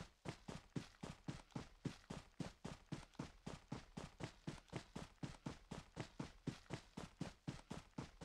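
Footsteps run quickly and steadily through grass.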